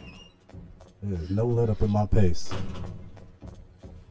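A man speaks loudly and with animation into a close microphone.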